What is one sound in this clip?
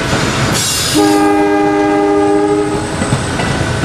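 A train horn sounds loudly.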